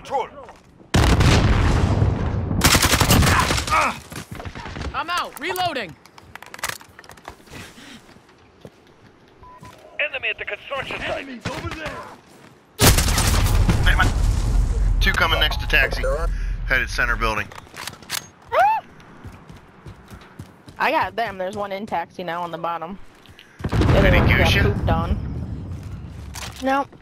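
Rifle shots fire loudly in quick bursts.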